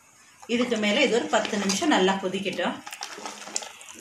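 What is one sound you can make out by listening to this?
A spoon stirs liquid in a metal pot.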